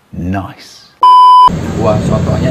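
A steady high test tone beeps briefly.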